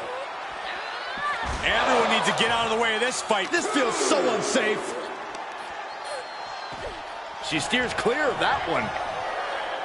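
Blows land with heavy thuds.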